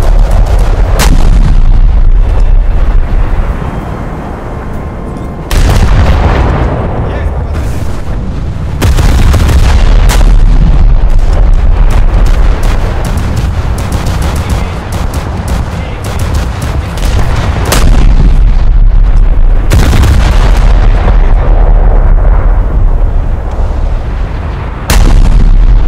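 Big naval guns fire with deep booming blasts.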